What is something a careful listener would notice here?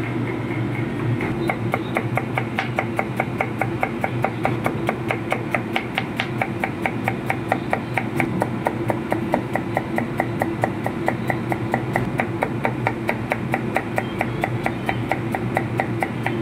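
A knife chops rapidly and steadily on a cutting board.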